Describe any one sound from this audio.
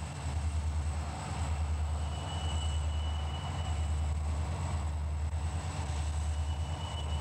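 A diesel locomotive engine rumbles deeply and steadily nearby.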